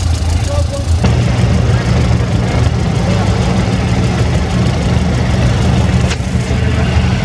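An old tractor engine chugs steadily nearby.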